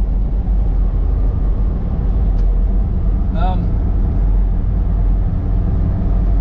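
Tyres rumble and crunch over gravel.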